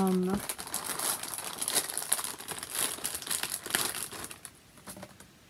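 Packaging rustles and crinkles in a woman's hands close by.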